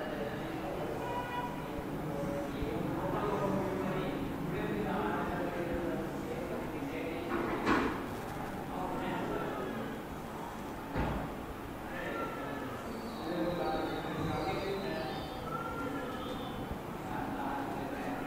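A marker squeaks across a whiteboard.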